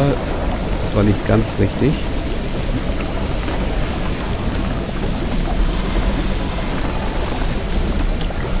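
Flames roar and whoosh.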